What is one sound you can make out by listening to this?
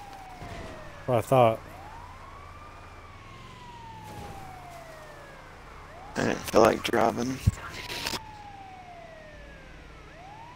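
An ambulance siren wails, sliding up and down in pitch.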